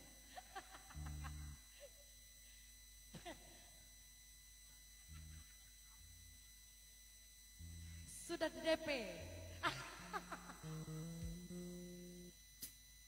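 An electric bass guitar plays short low notes.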